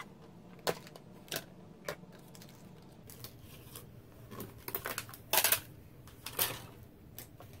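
Plastic stamp blocks click and clack together.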